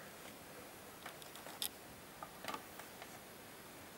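A record player's tonearm knocks and clicks as a hand moves it.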